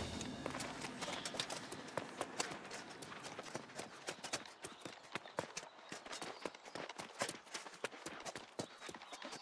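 Armoured footsteps clack quickly on stone.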